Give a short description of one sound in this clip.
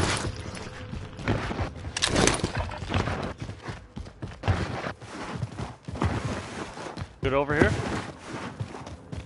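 Footsteps thud quickly across the ground.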